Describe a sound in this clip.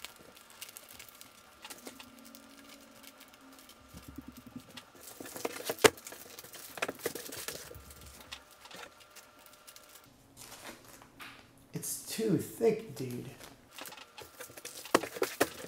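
Plastic comic bags crinkle and rustle as they are handled.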